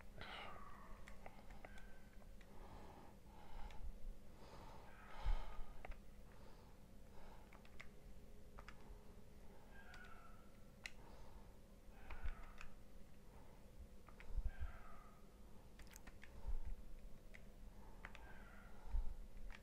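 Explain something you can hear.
Calculator keys click softly.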